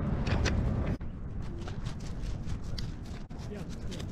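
Paws patter on gravel.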